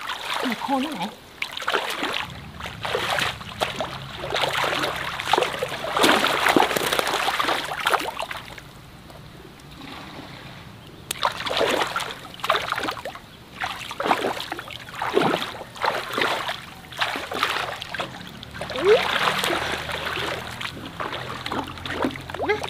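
A long-handled dip net sweeps and splashes through shallow muddy water.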